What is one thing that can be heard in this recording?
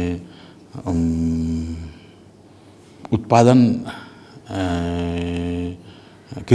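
An elderly man speaks slowly and calmly, close to a microphone.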